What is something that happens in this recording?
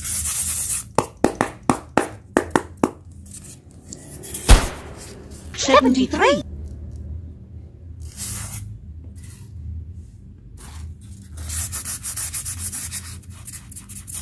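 Hands rub and squeak against a block of foam.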